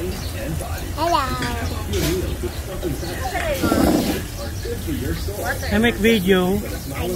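A young child babbles and squeals.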